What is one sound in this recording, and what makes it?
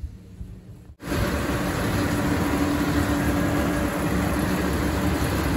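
A baler whirs and clatters close by.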